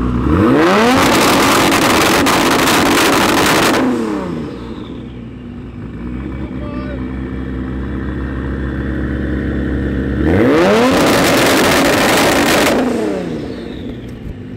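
A sports car engine revs sharply in loud bursts with popping exhaust.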